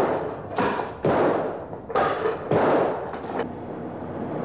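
Heavy chains clank and rattle.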